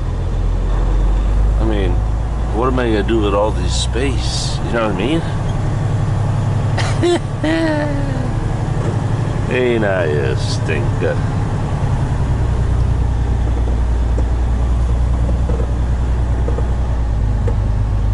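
A truck's diesel engine rumbles steadily as it drives slowly.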